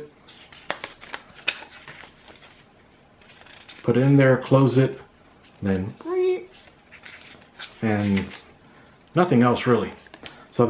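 Paper pages rustle and flip as a booklet is handled.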